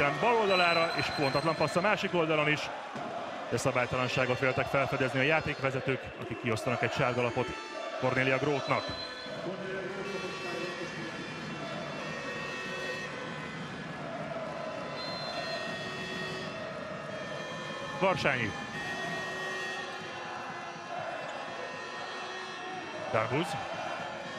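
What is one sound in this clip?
A large crowd cheers and chants in a big echoing hall.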